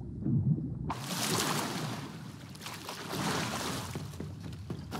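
Water splashes and churns as a swimmer surfaces.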